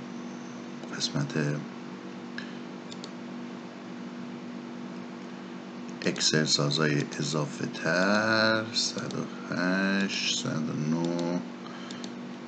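A man speaks calmly through a computer microphone, in short bursts.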